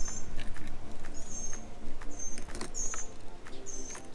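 A car door handle clicks open.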